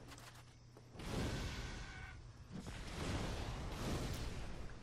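A fireball roars and bursts into flame.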